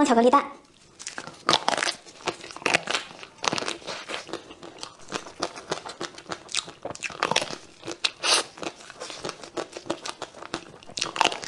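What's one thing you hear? A young woman bites and chews soft cake with wet, squishy mouth sounds close to a microphone.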